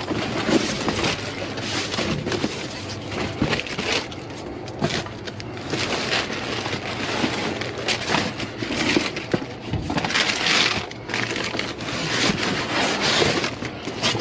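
Cardboard scrapes and thumps as it is shifted about.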